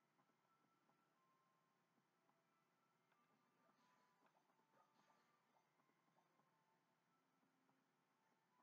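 Video game music plays softly through a television speaker.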